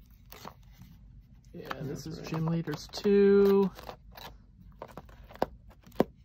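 Cards tap against each other with small clicks.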